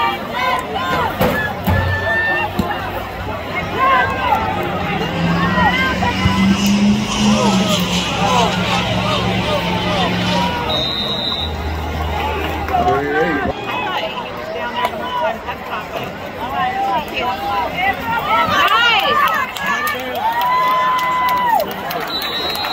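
Many people talk and call out nearby.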